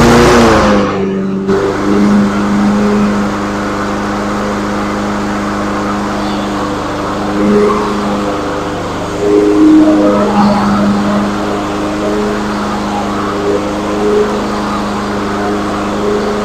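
A lawn mower engine runs with a steady drone, rising and falling slightly.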